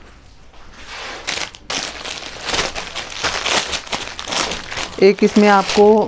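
A plastic packet crinkles as it is handled.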